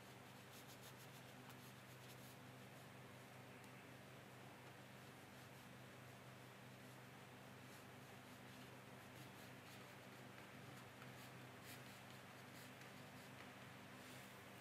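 A paintbrush strokes across paper.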